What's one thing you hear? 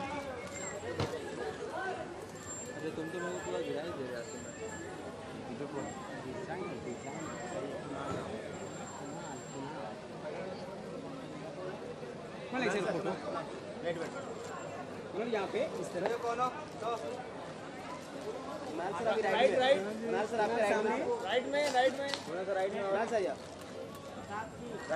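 Men shout and call out loudly nearby.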